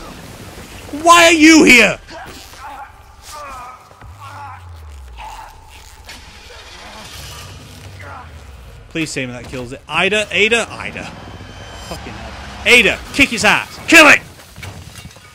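A young man shouts and exclaims excitedly into a close microphone.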